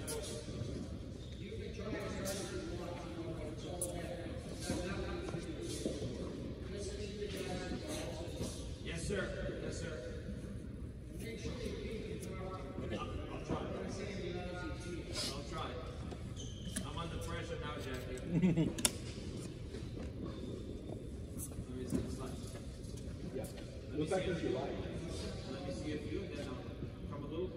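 A man talks calmly close by.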